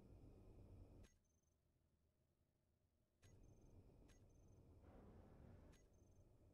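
A short electronic blip sounds several times, each followed by a brief high beep.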